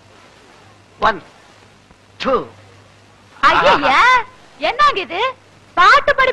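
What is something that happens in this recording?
A man speaks loudly into a microphone.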